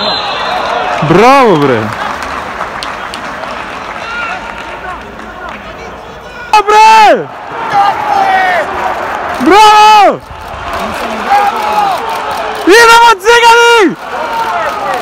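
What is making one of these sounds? Men shout across a large, echoing stadium.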